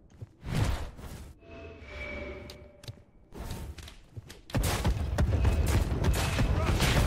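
Fantasy weapons clash and magic blasts burst loudly during a fight.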